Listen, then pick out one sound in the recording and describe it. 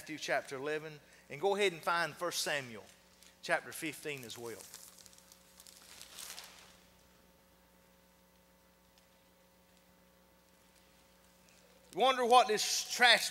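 A middle-aged man speaks calmly through a microphone in a large hall.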